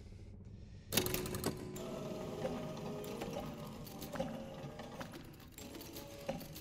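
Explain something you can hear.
Heavy metal discs grind and clank as they turn.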